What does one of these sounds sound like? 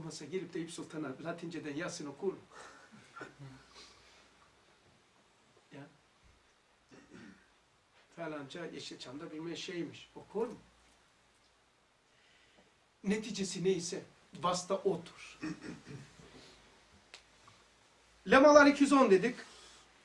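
An older man speaks calmly and with feeling, close by, pausing often.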